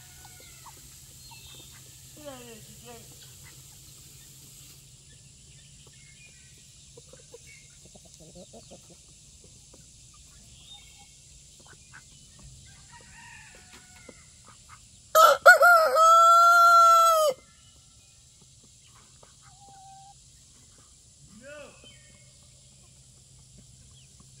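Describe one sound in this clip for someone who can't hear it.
Hens cluck softly.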